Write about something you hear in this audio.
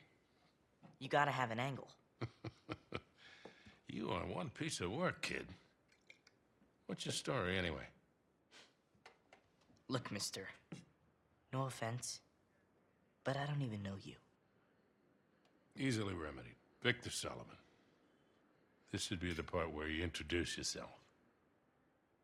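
A man speaks in a relaxed, teasing tone.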